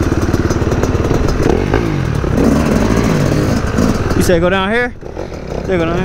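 A dirt bike engine putters and rumbles close by.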